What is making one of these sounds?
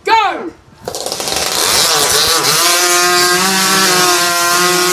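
A chainsaw roars steadily as it cuts through a log.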